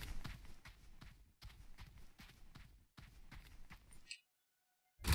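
Footsteps tap on cobblestones.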